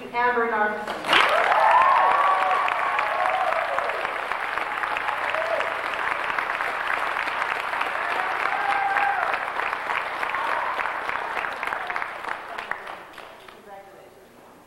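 A crowd applauds steadily in a large hall.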